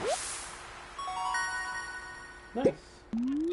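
A bright chime rings as a fish is caught.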